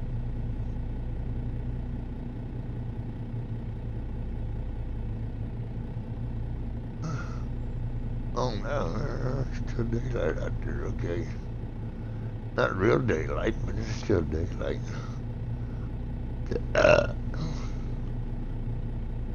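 A truck engine idles with a low, steady hum.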